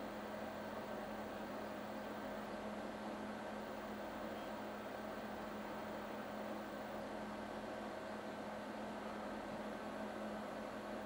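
An electrical transformer hums steadily.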